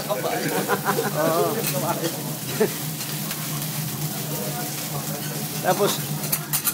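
Food sizzles on a hot grill.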